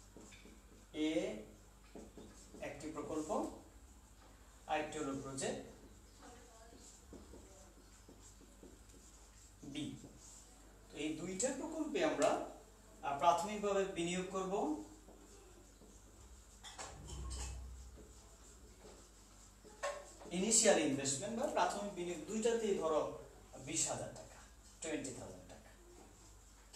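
A man lectures calmly, speaking in short bursts.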